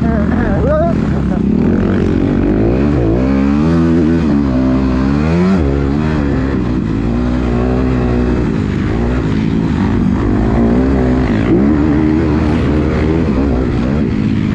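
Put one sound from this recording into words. A dirt bike engine roars close by, revving up and down as it climbs through the gears.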